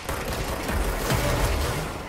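Glass and debris shatter and scatter.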